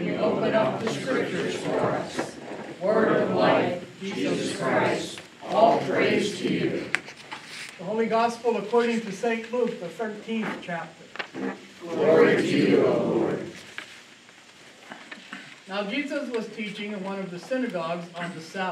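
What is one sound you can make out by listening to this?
An older man reads aloud calmly in an echoing room.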